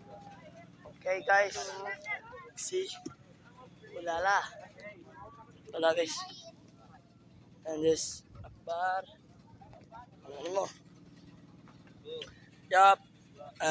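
A boy talks close by, with animation.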